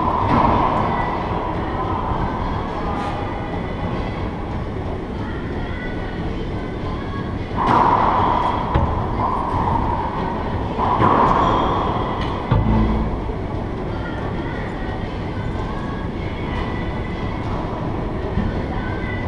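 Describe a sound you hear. Racquetballs smack sharply off the walls and echo through a large hard-walled court.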